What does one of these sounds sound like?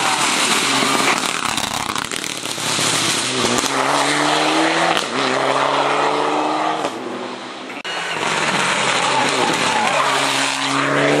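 A rally car engine roars loudly at high revs as it speeds past.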